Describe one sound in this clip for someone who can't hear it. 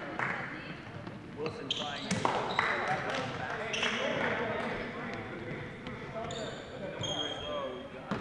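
A man coaches loudly from the sideline.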